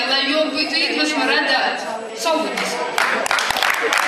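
Women sing together in a large echoing hall.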